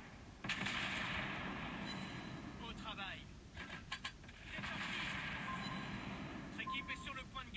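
Shell explosions roar in rapid bursts.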